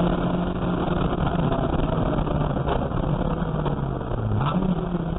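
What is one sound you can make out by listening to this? A race car engine roars loudly from inside the cabin, shifting pitch as it accelerates.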